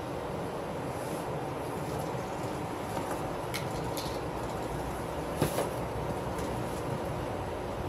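Cardboard boxes thump as they are loaded into a car.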